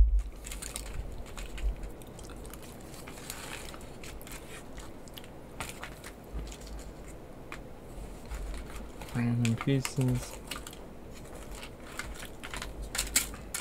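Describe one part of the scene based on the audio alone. Aluminium foil crinkles and rustles as it is handled.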